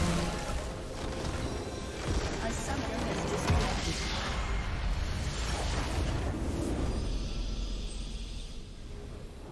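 A large magical structure explodes with a loud crashing rumble.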